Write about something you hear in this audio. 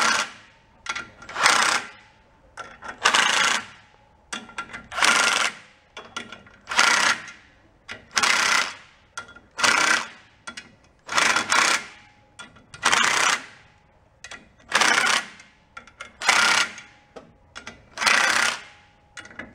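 An impact wrench rattles in short bursts, close by.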